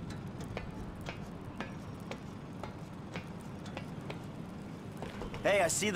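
A man climbs a metal ladder with clanking rungs.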